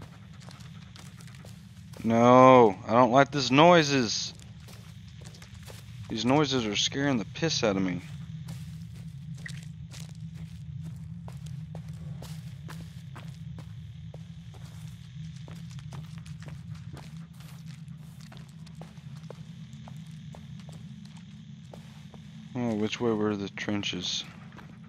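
Footsteps crunch on dry leaves and twigs.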